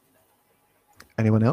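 A man speaks into a microphone over an online call.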